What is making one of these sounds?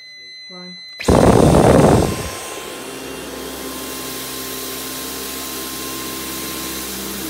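A cordless vacuum cleaner whirs steadily as it is pushed over a hard floor.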